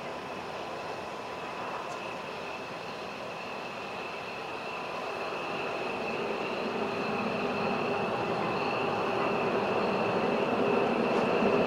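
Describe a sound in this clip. A jet engine whines and roars steadily, growing louder as the aircraft taxis closer.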